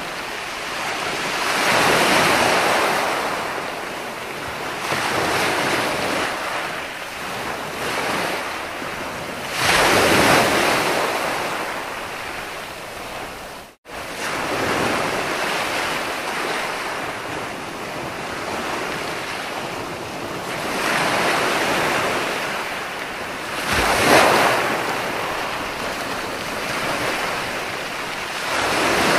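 Ocean waves roll in and crash onto the shore in steady surges.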